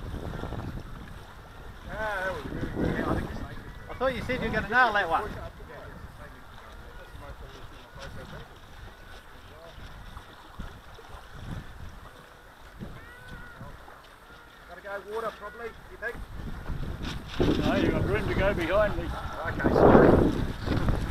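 Wind blows against the microphone outdoors by open water.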